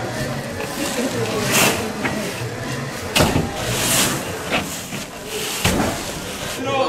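Heavy sacks thud as they are dropped and caught.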